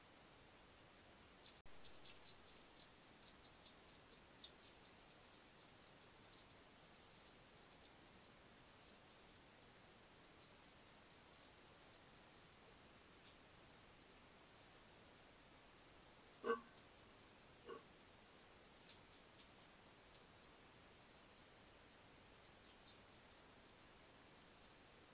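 A hedgehog crunches and chews food with small, quick clicks.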